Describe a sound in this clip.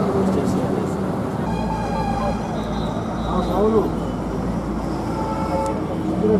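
Several men chatter nearby in a small crowd.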